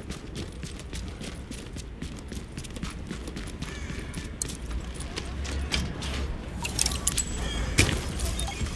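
Footsteps crunch quickly over gritty concrete.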